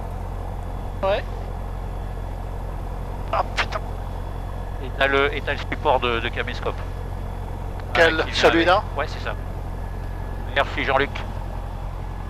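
A man speaks calmly through a headset intercom.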